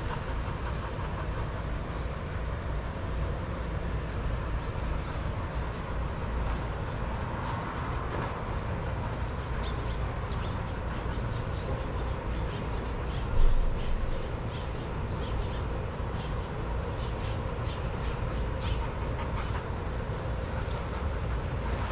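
Dogs' paws scuff and patter on sand.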